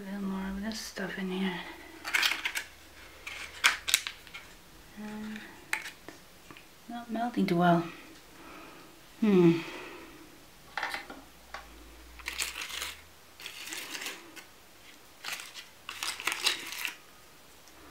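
A paper cupcake liner crinkles and rustles close by.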